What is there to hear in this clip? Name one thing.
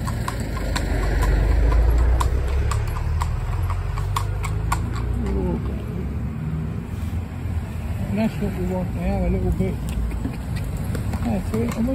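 Cars pass by close on the road.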